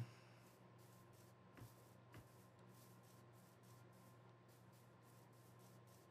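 Footsteps rustle rhythmically through grass.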